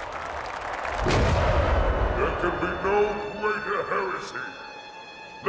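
A large crowd roars and cheers in a huge echoing arena.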